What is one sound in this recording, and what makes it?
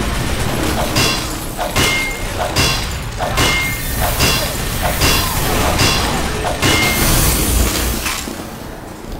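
A metal wrench clangs repeatedly against metal.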